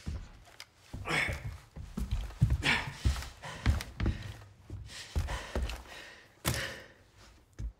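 A man pants and grunts heavily, close by.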